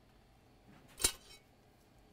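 Metal tweezers click against a small part.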